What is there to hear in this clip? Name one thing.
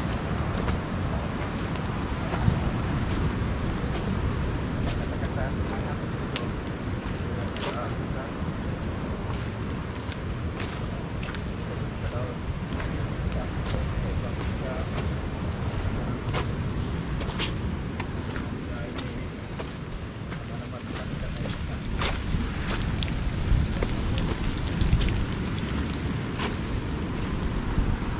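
Footsteps crunch on a leafy dirt trail.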